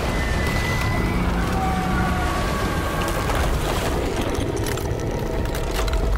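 Debris rains down and clatters.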